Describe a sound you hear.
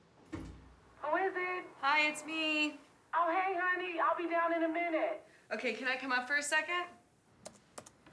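A woman speaks close by into an intercom.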